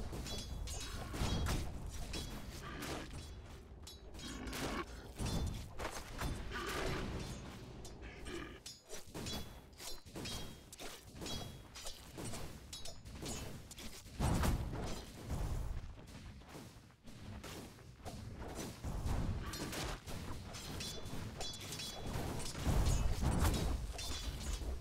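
Fantasy battle sound effects clash and thud with magical bursts.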